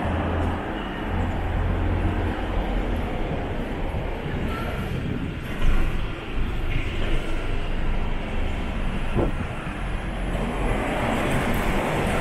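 A double-decker bus engine rumbles as the bus drives past close by.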